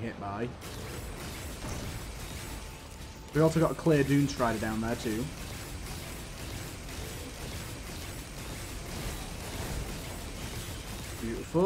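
Rapid electronic blasts of gunfire crackle and pop.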